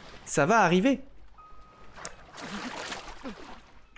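Water splashes as a swimmer paddles.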